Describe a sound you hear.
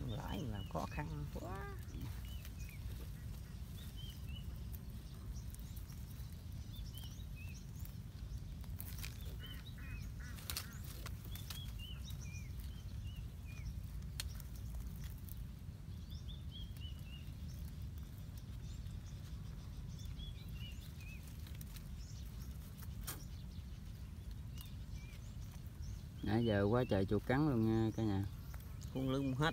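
Dry grass rustles and crackles under hands.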